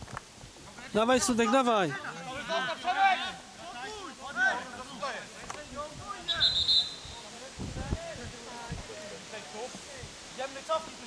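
Men shout to each other across an open field outdoors.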